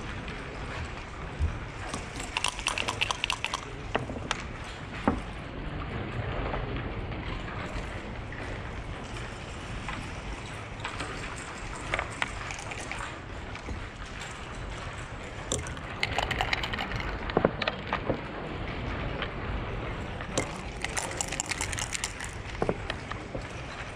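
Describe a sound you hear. Backgammon checkers click as they are moved on a board.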